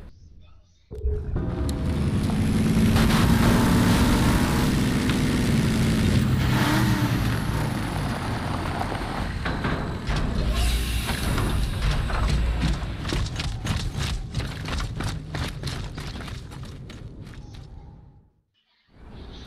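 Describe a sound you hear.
A heavy armoured vehicle's engine rumbles deeply as it drives.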